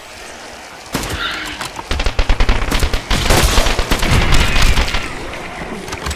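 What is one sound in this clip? A submachine gun fires in rapid bursts close by.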